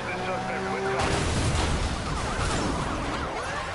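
Cars crash together with a loud metallic smash.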